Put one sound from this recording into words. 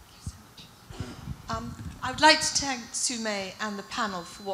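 An older woman speaks calmly into a microphone.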